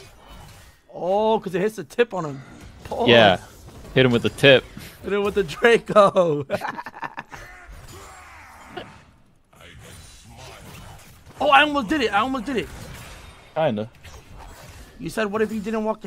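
A young man talks and laughs loudly into a close microphone.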